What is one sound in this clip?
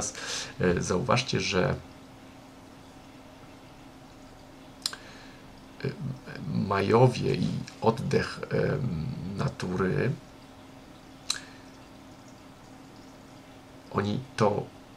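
A middle-aged man talks calmly and close up, in short bursts with pauses.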